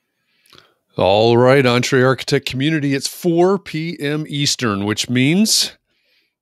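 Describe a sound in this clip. A middle-aged man talks with animation over an online call.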